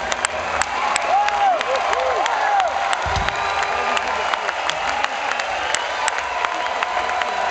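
A crowd cheers and shouts nearby.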